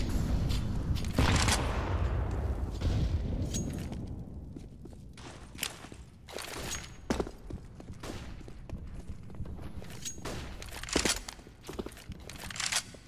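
Footsteps tap on hard ground at a steady walking pace.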